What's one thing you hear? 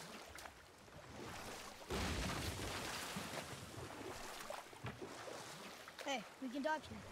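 An oar splashes and churns through water.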